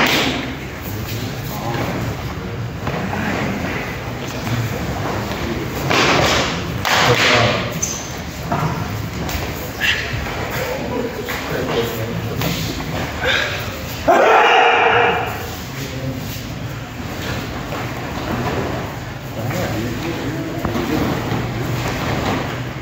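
Bare feet thump and slide on a hard floor.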